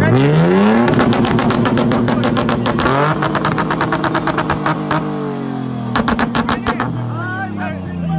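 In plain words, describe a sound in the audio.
A pickup truck's exhaust crackles and pops in rapid bursts.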